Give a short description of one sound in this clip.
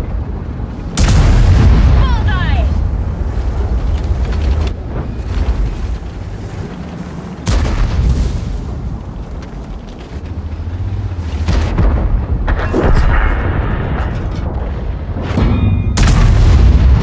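A large tank gun fires with a heavy boom.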